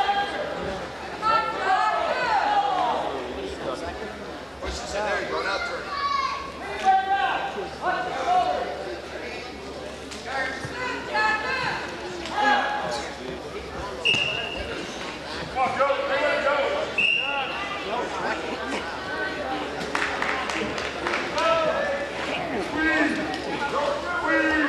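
Wrestlers' bodies scuff and thump on a mat.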